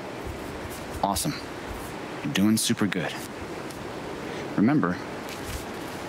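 A man speaks calmly and encouragingly.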